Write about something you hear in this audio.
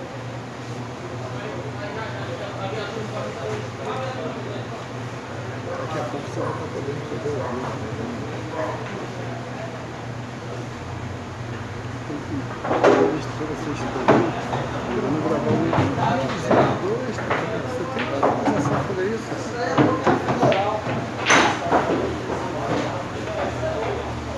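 Several young men talk nearby.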